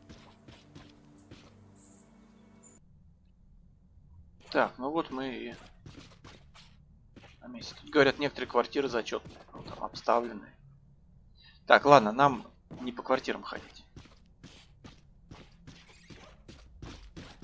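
Footsteps walk steadily on a hard floor.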